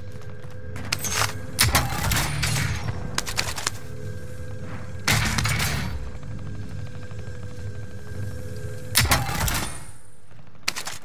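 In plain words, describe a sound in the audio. Gear clatters and rattles as items are picked up.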